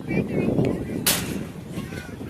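A metal bat cracks sharply against a baseball.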